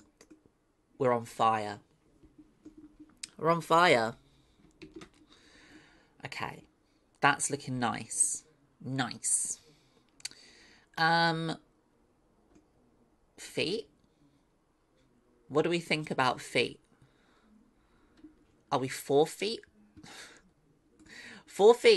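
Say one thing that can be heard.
A woman talks casually into a close microphone, in short bursts.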